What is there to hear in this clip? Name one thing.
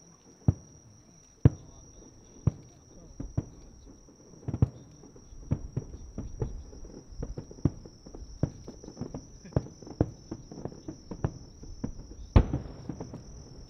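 Fireworks burst with loud booming bangs.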